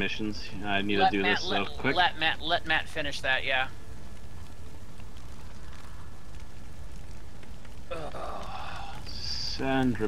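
A bonfire crackles and roars nearby.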